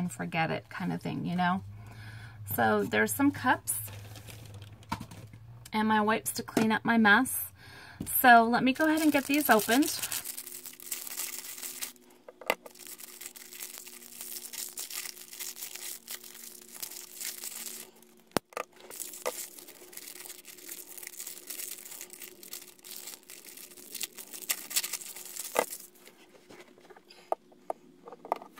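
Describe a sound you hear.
Plastic bottles tap softly against a hard surface.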